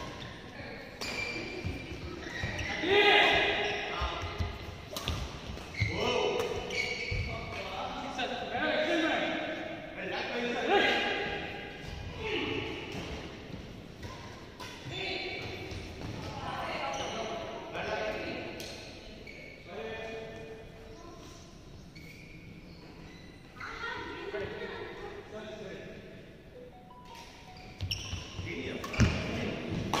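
Women talk and call out during play, close by.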